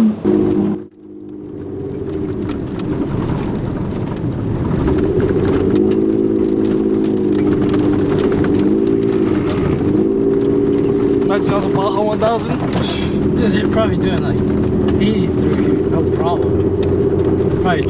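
A pickup truck's engine revs and pulls hard, heard from inside the cab.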